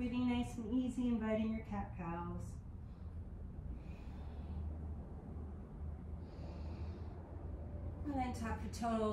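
A woman speaks calmly and close by, pausing between phrases.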